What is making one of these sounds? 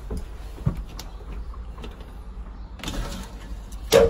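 A sliding door rolls open.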